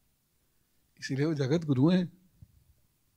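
A man speaks briefly in a lilting, sing-song voice through a microphone.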